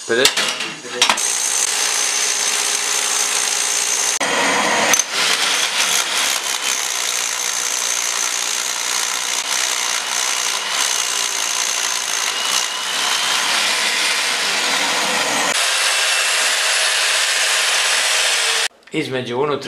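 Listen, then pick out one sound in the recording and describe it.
A hammer drill pounds loudly into a wall.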